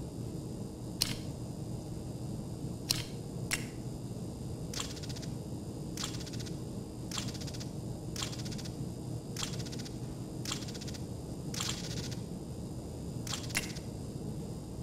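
Soft interface clicks and ticks sound at intervals.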